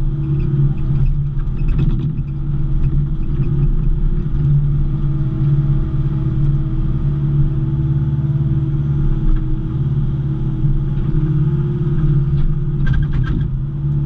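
Metal clanks and rattles from the excavator bucket.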